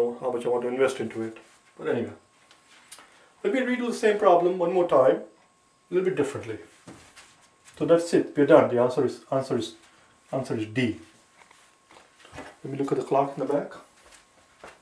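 A middle-aged man speaks calmly and explains, close by.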